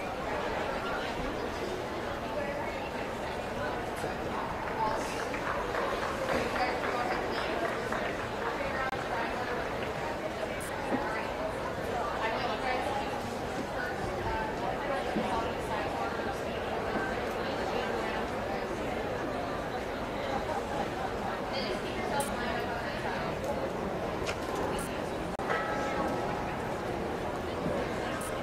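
A large crowd murmurs and chatters throughout, in a wide open space.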